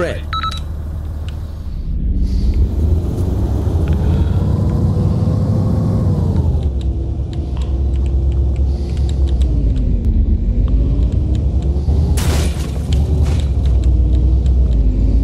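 A truck engine drones and revs up and down.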